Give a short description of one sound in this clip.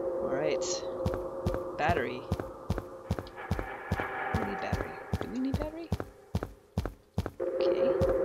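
Footsteps thud steadily on a hard concrete floor.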